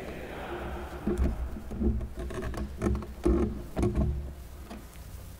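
Something thumps and rustles against a wooden lectern in a large echoing hall.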